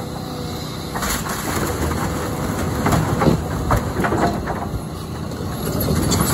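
Wood splinters and cracks as a house is torn down.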